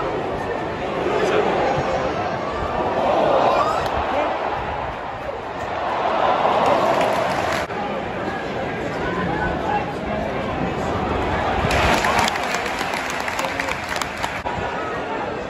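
A large crowd roars and cheers in surges.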